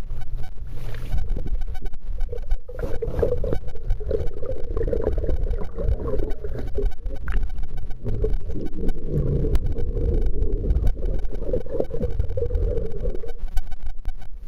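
Underwater bubbles gurgle and rumble close by.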